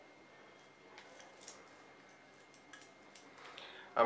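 A metal watch bracelet clinks softly as it is handled.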